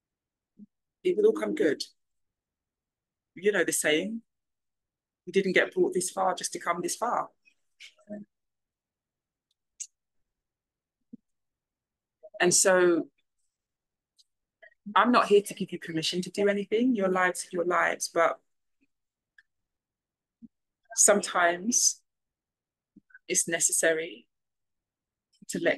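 A woman speaks calmly and thoughtfully into a close microphone, with pauses.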